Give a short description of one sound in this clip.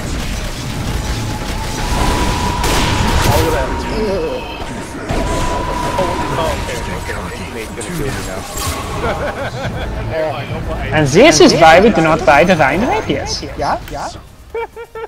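Spell effects crackle and boom during a fight.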